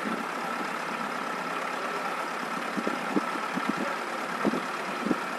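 Car engines hum low as vehicles drive slowly.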